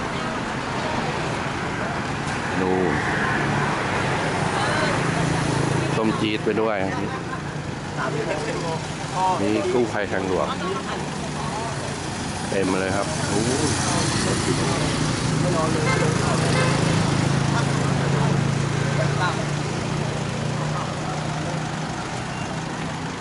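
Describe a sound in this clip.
A vehicle engine idles steadily nearby.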